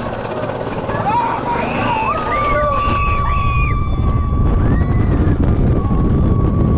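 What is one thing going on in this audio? Young riders scream as the coaster drops.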